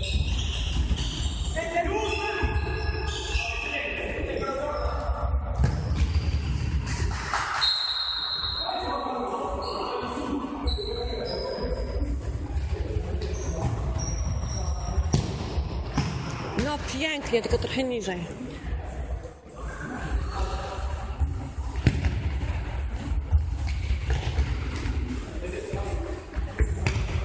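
Men shout to each other across the hall.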